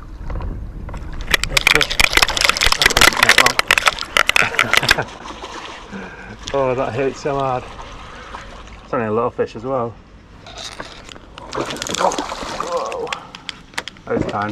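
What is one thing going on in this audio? A hooked fish thrashes and splashes in the water.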